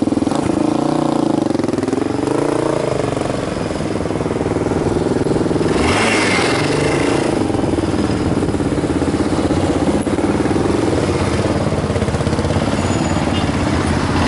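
A motorcycle engine rumbles close by, revving up and down.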